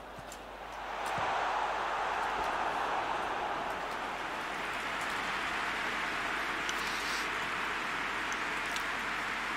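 A stadium crowd bursts into a loud cheer.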